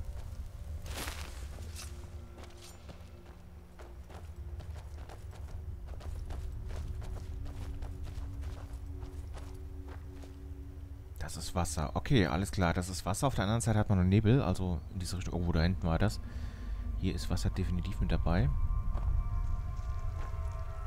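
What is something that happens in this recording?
Footsteps scuff over rocky ground.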